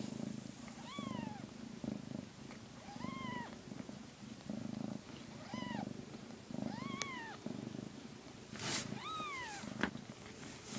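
Kittens mew in high, thin cries.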